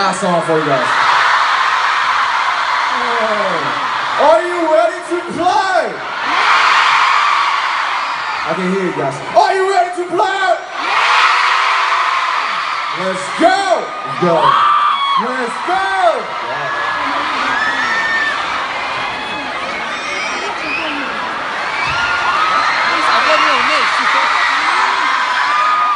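A large crowd screams and cheers loudly in a big echoing hall.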